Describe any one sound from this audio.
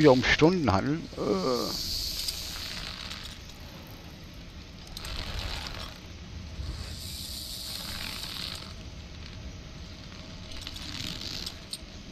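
Hands grip and creak along a climbing rope.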